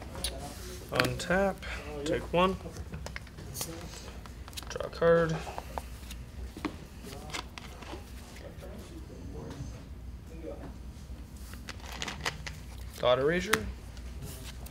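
A man talks briefly and calmly nearby.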